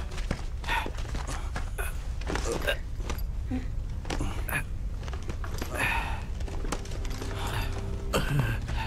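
Armour and clothing rustle and clink as men grapple.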